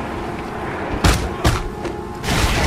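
Heavy blows land with loud thuds.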